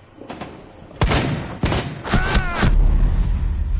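Loud gunshots fire in a quick burst close by.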